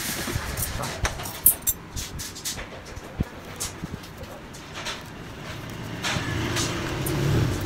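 Paper rustles and crackles as it is handled.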